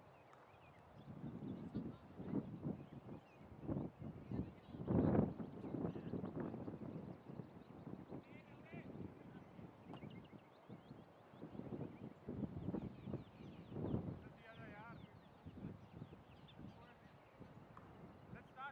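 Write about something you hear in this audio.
Men talk and call out outdoors across an open field.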